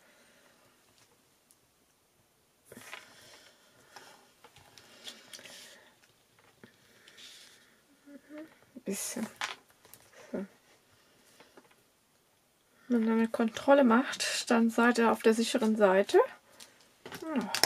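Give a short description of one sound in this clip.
Paper rustles and slides across a hard surface.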